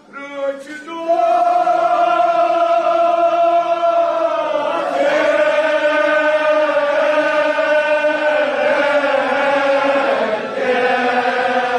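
A large crowd of men chants loudly together.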